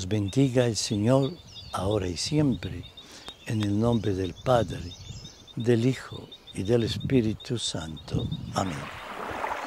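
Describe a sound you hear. An elderly man speaks calmly and clearly close to a microphone.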